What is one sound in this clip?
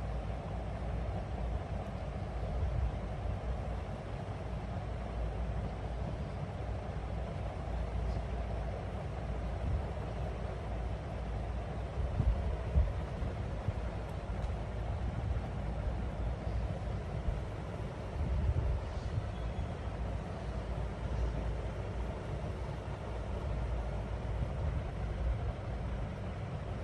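A cockatiel chirps softly.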